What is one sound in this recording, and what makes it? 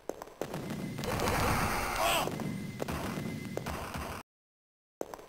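A creature growls and screams as it is hit.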